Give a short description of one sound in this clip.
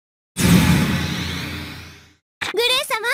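A magical whoosh swells and shimmers, then fades.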